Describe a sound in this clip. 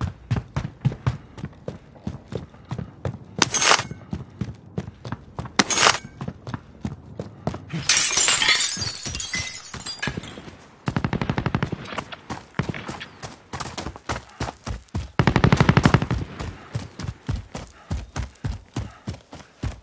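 Footsteps thud quickly on the ground while running.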